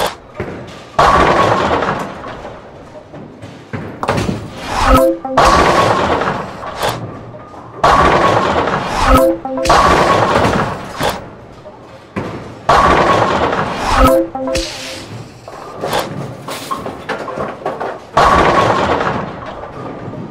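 A bowling ball rolls down a lane with a rumble.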